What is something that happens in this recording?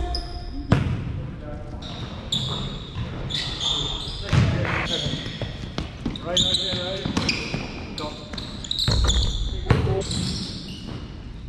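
Sneakers squeak sharply on a wooden floor in a large echoing gym.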